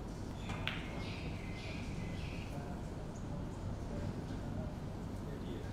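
Snooker balls knock together and roll across the table.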